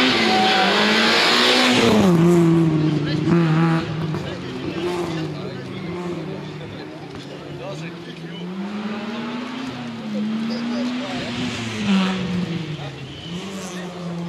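A rally car engine roars past at high revs, then fades into the distance as it keeps revving.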